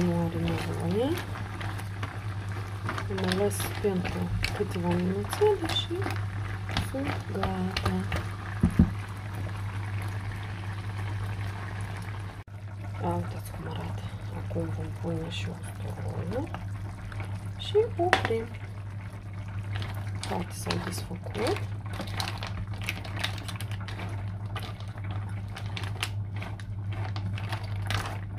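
Mussels simmer and bubble in a pan.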